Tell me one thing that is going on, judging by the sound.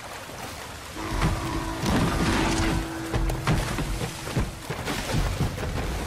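A waterfall roars and rushes steadily.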